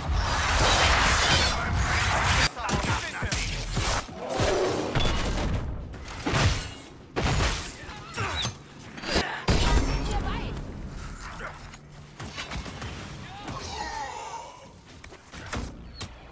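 Magic spells burst and crackle.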